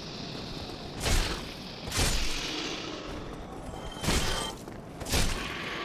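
Heavy weapon blows land with loud, dull thuds.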